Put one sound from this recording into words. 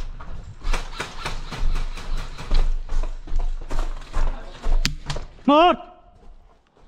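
Footsteps crunch quickly over gravel and debris.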